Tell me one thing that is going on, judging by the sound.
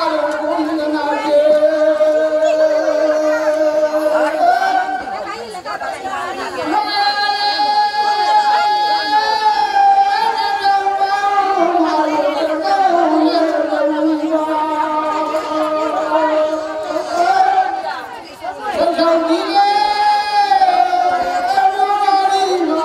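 An elderly man chants in long, drawn-out tones through a microphone and loudspeaker.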